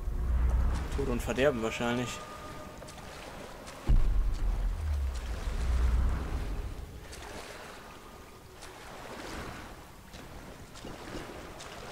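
Water splashes and swishes as someone wades through it.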